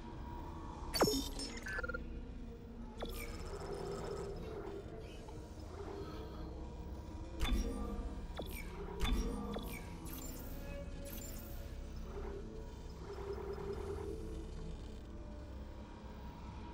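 Short electronic menu clicks and beeps sound now and then.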